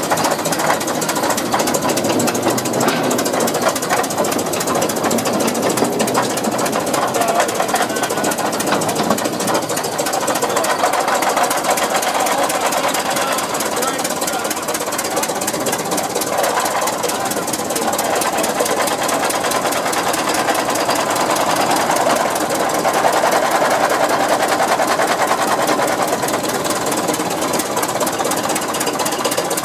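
An old engine chugs and rattles steadily close by.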